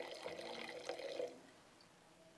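Wine pours and gurgles into a glass.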